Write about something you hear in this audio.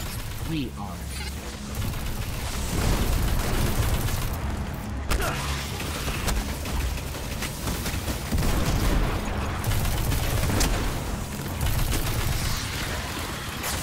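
Energy weapons fire in rapid bursts.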